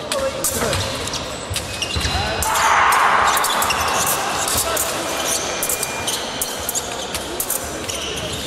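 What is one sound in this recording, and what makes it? Fencing blades click and clash.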